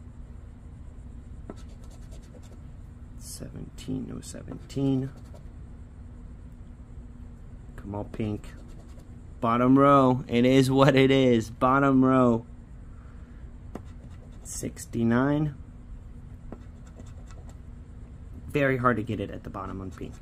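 A coin scratches across a scratch card.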